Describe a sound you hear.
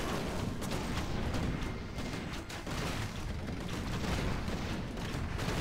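Weapons clash and strike again and again in a busy battle.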